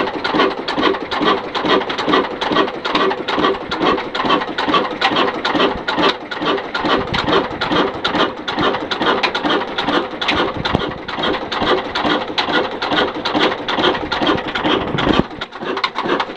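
Valve gear on a stationary diesel engine clatters with each stroke.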